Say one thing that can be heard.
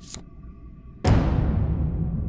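A card slaps down onto a table.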